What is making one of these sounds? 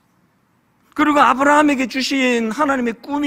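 A middle-aged man speaks earnestly into a microphone.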